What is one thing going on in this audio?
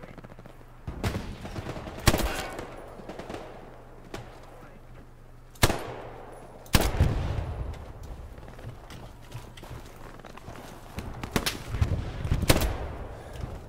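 A rifle fires single loud shots that echo away.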